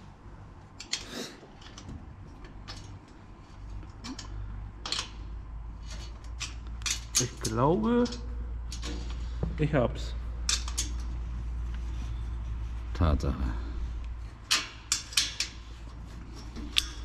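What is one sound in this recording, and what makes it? A wrench ratchets as a bolt is turned.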